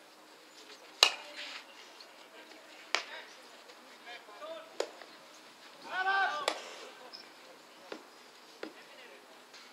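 A bat cracks against a ball several times.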